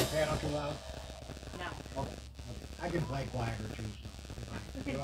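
A drum kit keeps a soft beat.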